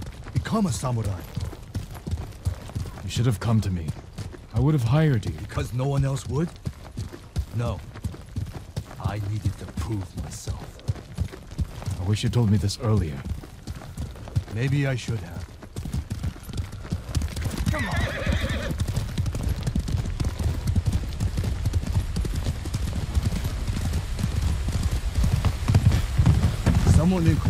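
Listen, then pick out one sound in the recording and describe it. Horses' hooves thud steadily at a canter on a dirt path.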